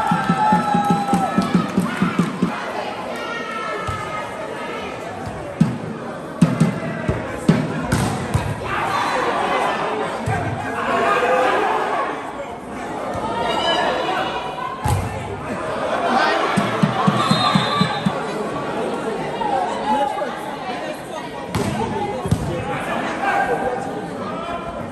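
A crowd of spectators cheers and chatters under a large metal roof.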